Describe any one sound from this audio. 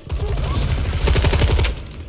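A gun fires in quick shots.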